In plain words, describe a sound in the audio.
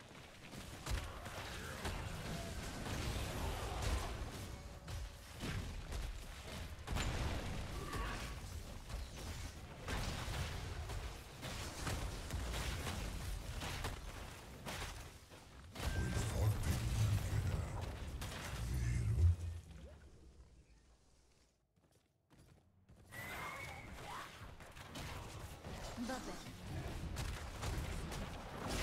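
Game battle effects clash, crackle and boom in quick bursts.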